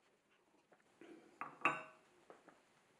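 A ceramic mug is set down on a metal wheel with a knock.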